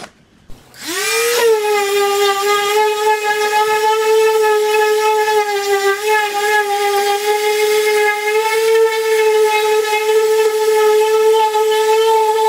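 An electric sander hums steadily.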